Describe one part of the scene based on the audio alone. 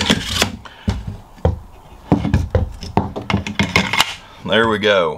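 Rifles knock and clatter against a wooden tabletop as they are moved.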